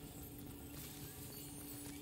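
Laser gunfire crackles and buzzes.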